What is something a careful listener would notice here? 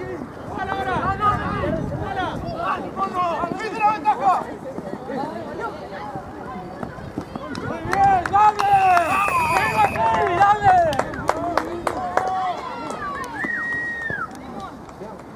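Young men shout and cheer excitedly across an open field outdoors.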